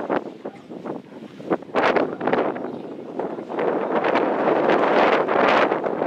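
Wind gusts strongly outdoors.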